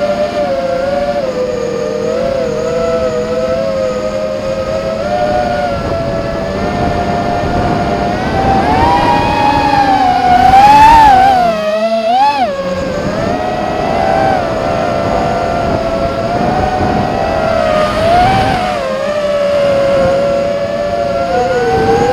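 Drone propellers whine steadily close by, rising and falling in pitch.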